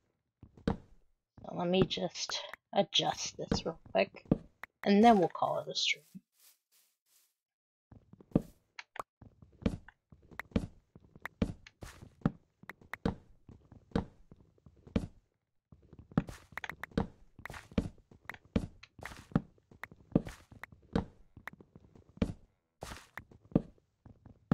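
An axe chops rapidly at wood with quick, steady knocks.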